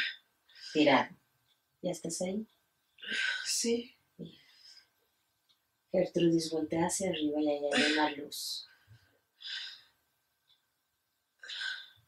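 A woman speaks in short bursts close by.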